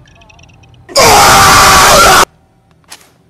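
A young man shouts loudly and excitedly into a microphone.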